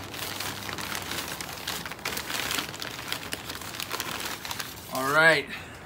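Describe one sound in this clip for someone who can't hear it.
Paper bags rustle and crinkle close by.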